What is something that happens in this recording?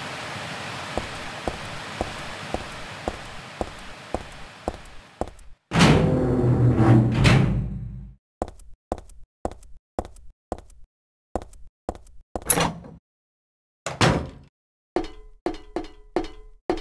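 Footsteps echo on a hard floor at a steady walking pace.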